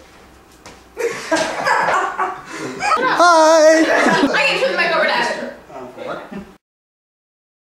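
Teenagers talk and laugh loudly close by.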